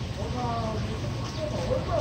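Traffic hums along a city street nearby.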